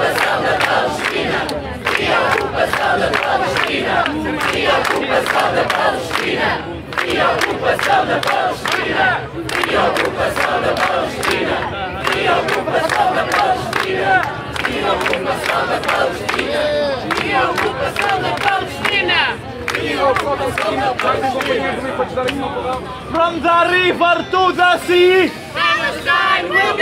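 A large crowd chants loudly together outdoors.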